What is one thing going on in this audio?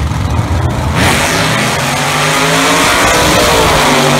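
A race car engine roars loudly as the car speeds off.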